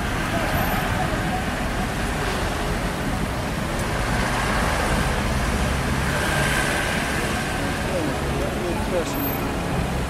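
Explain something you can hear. Traffic rumbles steadily along a busy street.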